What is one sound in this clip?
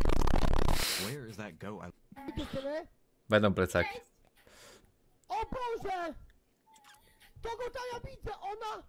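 A man talks and laughs with animation into a close microphone.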